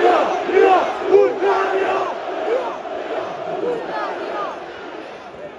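A large crowd sings and chants loudly outdoors.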